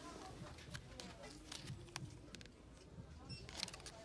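A paper tag rustles softly between fingers.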